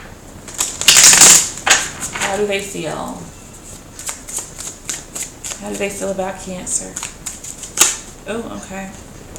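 Playing cards flick and snap as they are shuffled.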